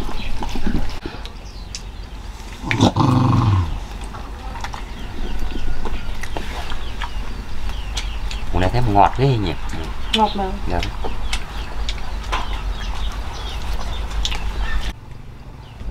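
A man chews and smacks his lips.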